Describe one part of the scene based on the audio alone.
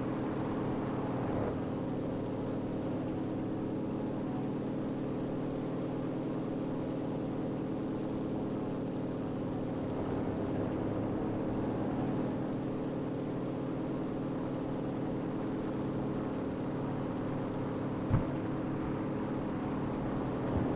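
A propeller aircraft engine drones steadily and loudly.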